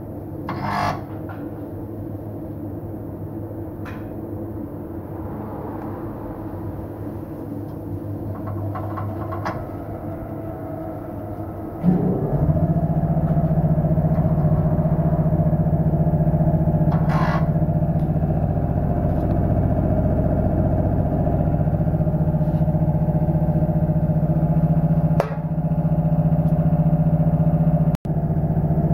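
A wheel spins on a machine with a steady motor hum that grows louder partway through.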